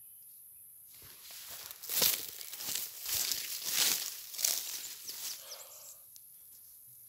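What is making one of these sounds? Footsteps rustle through dry grass up close.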